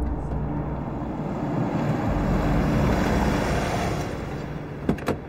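A car drives past on a road.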